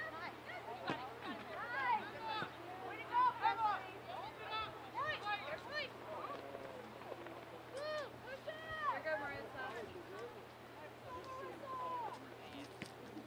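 Young women shout and call out to each other across an open field.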